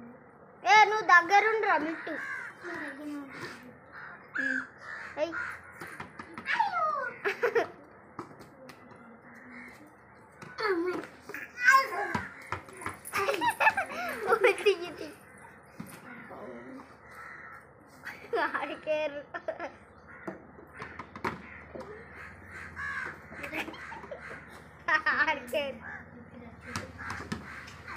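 Young children babble and squeal playfully nearby.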